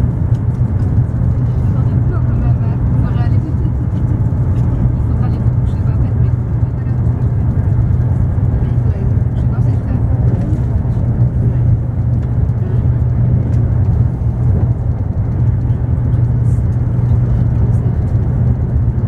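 A train rumbles steadily along the tracks at speed, heard from inside the carriage.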